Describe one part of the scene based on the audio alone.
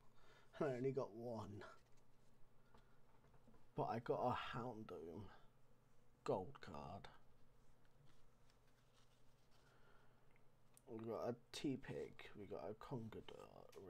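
Playing cards rustle and slide against each other in hands.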